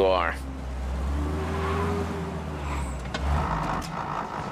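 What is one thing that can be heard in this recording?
A car engine rumbles and then stops.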